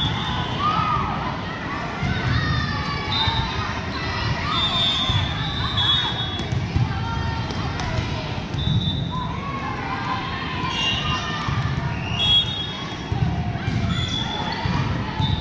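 Young girls call out to each other during play.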